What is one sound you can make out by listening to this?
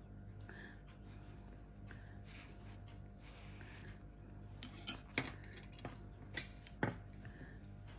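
Knitting needles click together softly.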